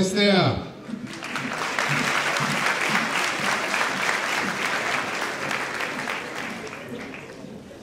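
A large crowd applauds and cheers.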